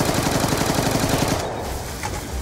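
A gun fires in a rapid burst.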